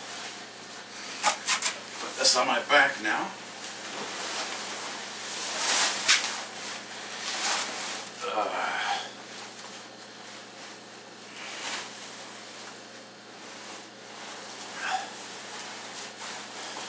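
A heavy winter jacket rustles as a man moves in it.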